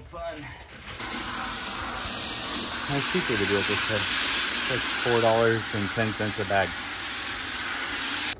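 Water from a hose splashes into a bucket.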